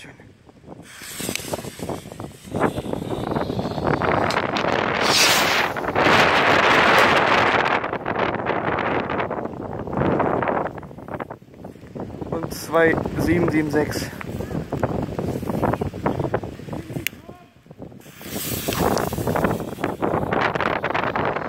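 A firework fuse fizzes and sputters.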